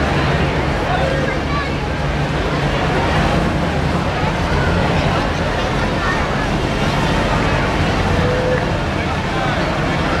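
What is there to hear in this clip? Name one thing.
A crowd chatters and cheers outdoors along a street.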